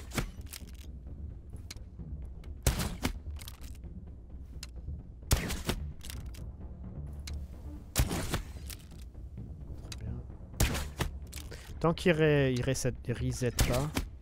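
A crossbow fires with a sharp twang, again and again.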